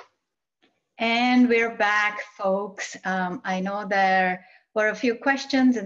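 A woman speaks warmly and with animation over an online call.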